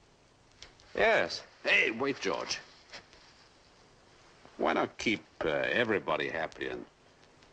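A middle-aged man talks eagerly, close by.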